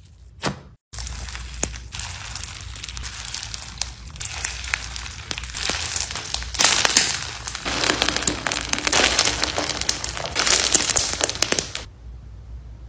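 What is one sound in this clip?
Crunchy slime crackles and pops as it is squeezed.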